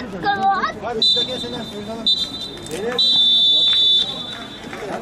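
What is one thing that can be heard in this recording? A referee's whistle blows in several sharp blasts.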